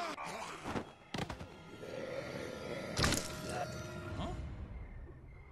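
A young man speaks with animation, close to the microphone.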